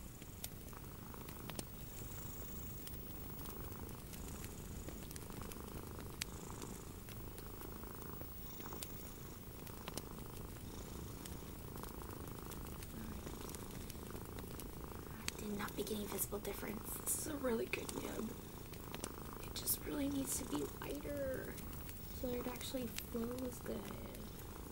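Small plastic pieces click and tap softly between fingers.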